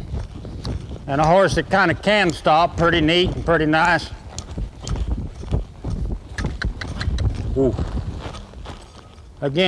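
A horse's hooves thud on soft dirt as it lopes.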